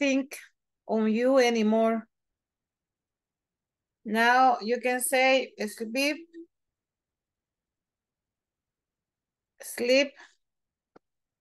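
A woman speaks calmly over an online call, pausing between phrases.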